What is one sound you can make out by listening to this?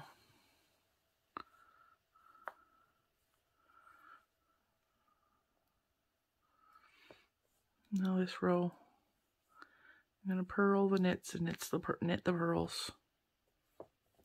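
Metal knitting needles click and scrape softly against each other.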